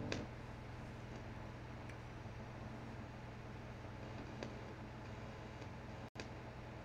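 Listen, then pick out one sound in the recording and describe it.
An electric bass guitar plays low notes softly.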